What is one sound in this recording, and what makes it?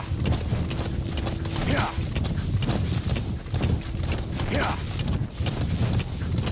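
Horse hooves thud rapidly on a dirt path at a gallop.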